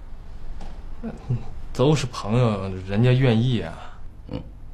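A young man speaks with a tense, questioning tone close by.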